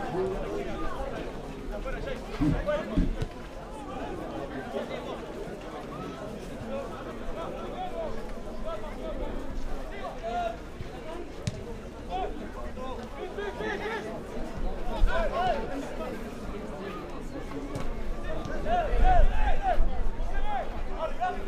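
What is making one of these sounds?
A crowd of spectators chatters and calls out outdoors.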